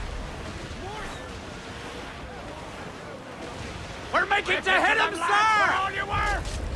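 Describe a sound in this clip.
Waves wash against a wooden ship's hull.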